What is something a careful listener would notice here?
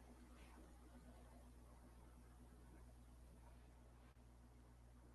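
A young woman speaks quietly through a microphone.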